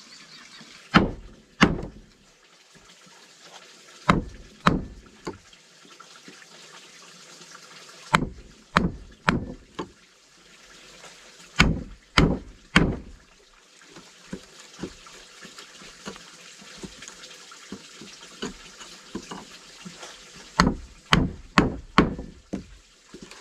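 A wooden mallet knocks sharply on a chisel cutting into wood, in bursts of blows.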